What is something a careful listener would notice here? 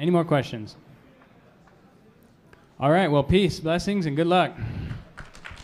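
A young man speaks through a microphone in a large hall.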